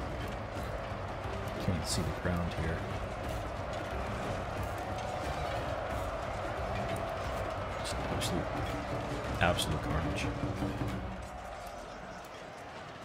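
A large crowd of soldiers roars and clashes in a battle.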